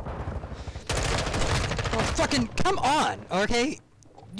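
Rapid rifle shots ring out close by.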